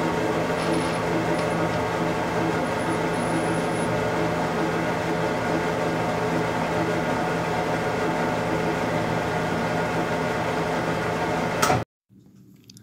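A testing machine's motor hums steadily.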